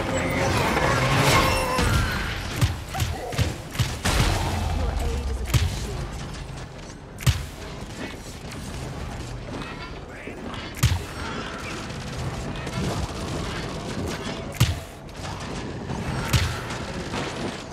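Gunshots and blasts go off in sharp bursts.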